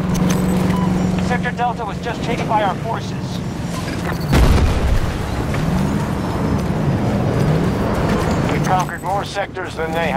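A tank engine rumbles nearby.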